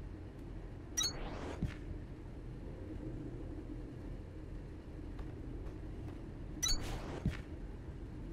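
A building piece snaps into place with a bright chime and a whoosh.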